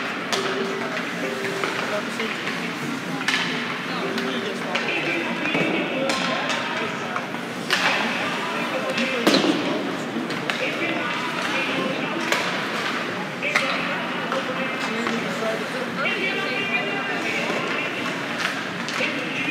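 Hockey sticks clack sharply against the puck and each other in a large echoing rink.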